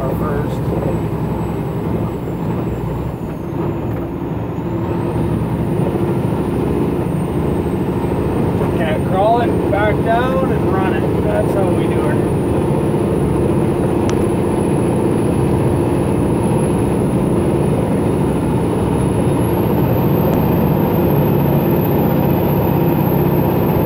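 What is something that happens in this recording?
A heavy truck engine drones steadily from inside the cab.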